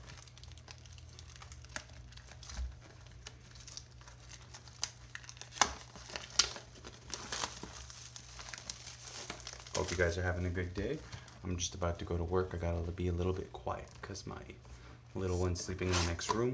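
A cardboard box rubs and taps against a soft mat.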